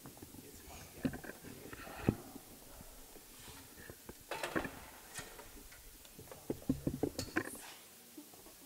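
Percussion instruments clatter and knock in a large echoing hall.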